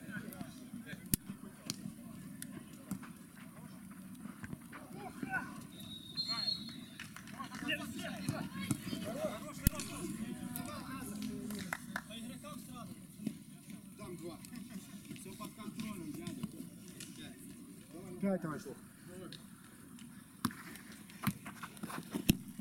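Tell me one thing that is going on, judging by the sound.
A football is kicked with sharp thuds on artificial turf.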